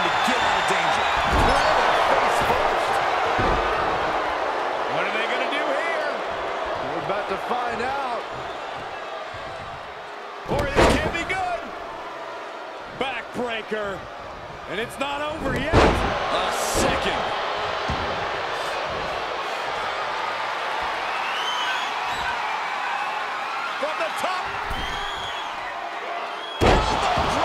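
A large crowd cheers and roars throughout in a big echoing arena.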